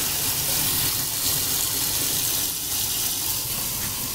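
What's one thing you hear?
Tap water runs and splashes into a metal sink.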